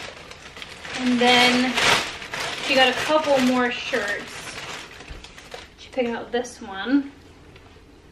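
A woman talks casually, close by.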